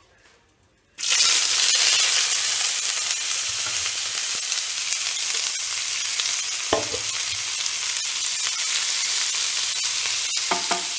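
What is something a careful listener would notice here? Onions sizzle loudly in hot oil.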